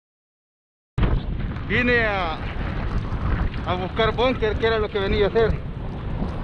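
A man talks up close.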